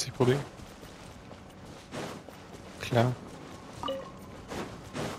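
Quick footsteps swish through grass at a run.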